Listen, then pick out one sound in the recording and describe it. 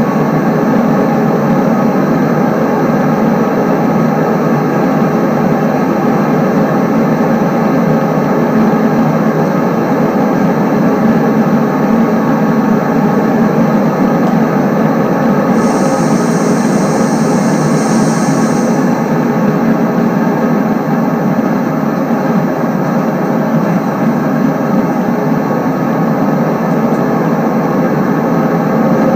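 A train engine rumbles steadily as the train runs along the track.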